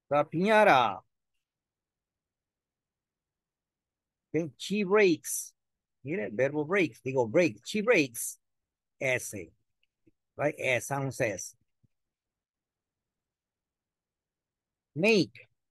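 An elderly man speaks slowly and clearly over an online call.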